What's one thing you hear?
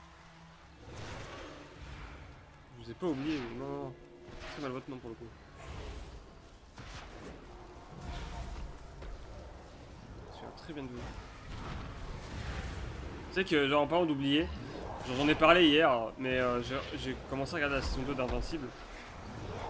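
Magic spells whoosh and crackle in a game.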